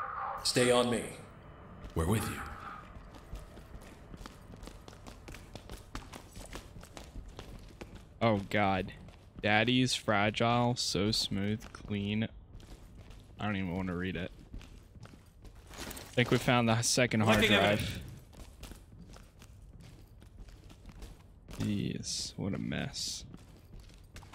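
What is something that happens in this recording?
A man talks with animation into a close microphone, in short bursts.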